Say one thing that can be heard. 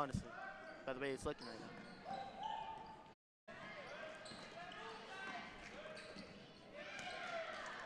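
A crowd murmurs in an echoing gym.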